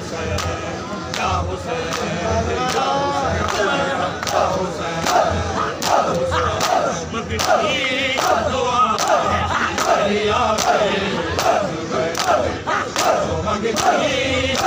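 A crowd of men chants loudly in unison.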